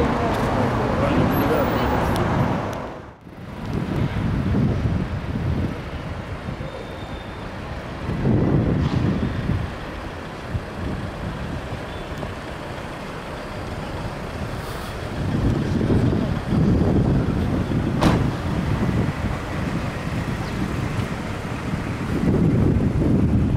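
City traffic rumbles steadily outdoors, swelling now and then.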